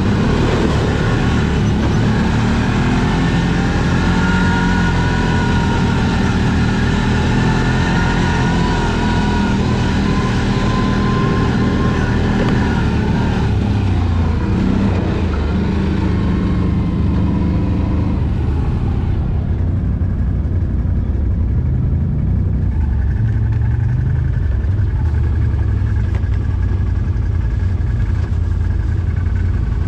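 A quad bike engine roars close by, revving up and down.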